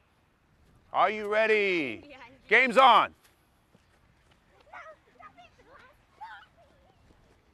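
Young girls shout loudly to each other outdoors.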